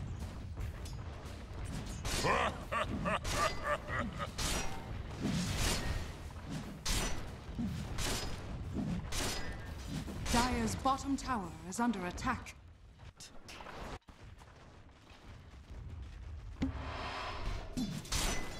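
Game spells burst and crackle during a fight.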